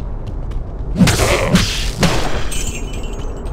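A magic spell bursts with a crackling, sizzling blast.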